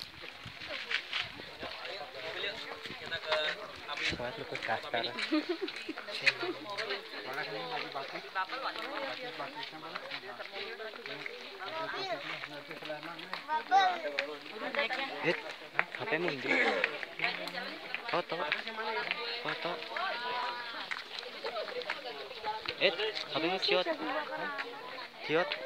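A crowd of men, women and children chatter nearby outdoors.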